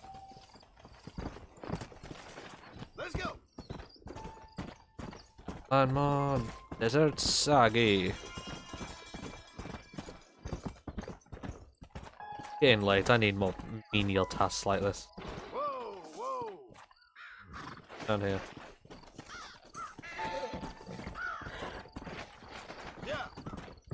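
A horse's hooves thud at a gallop over dry ground.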